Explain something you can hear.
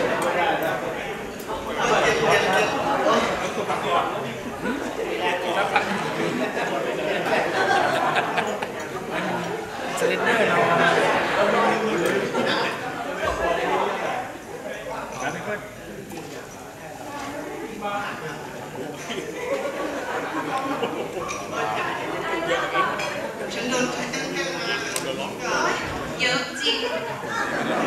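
A crowd laughs and cheers.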